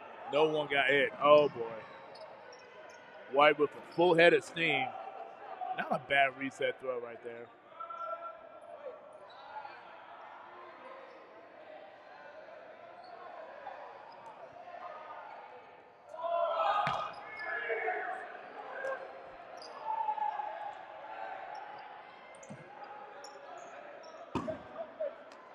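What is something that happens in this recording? Spectators chatter nearby in an echoing hall.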